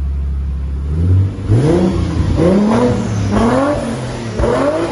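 A car engine revs hard several times, its pitch rising and falling.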